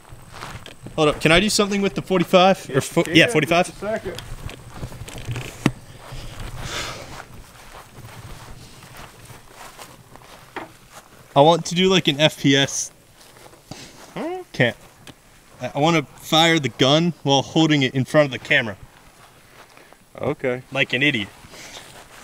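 An older man talks calmly and close by, with pauses.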